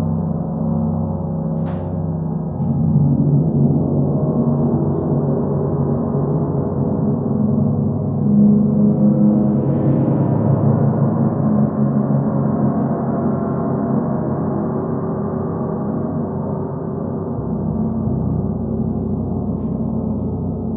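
Large gongs are played with a mallet, swelling into a deep, shimmering resonant drone.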